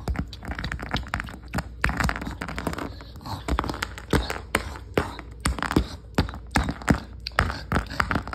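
A hand rubs and brushes against fabric close by.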